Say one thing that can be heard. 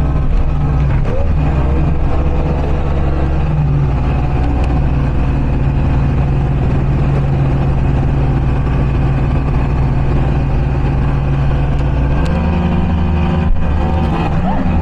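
Wind buffets loudly past the open boat.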